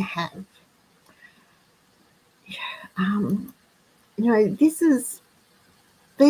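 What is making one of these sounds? An elderly woman speaks calmly through an online call, in short bursts.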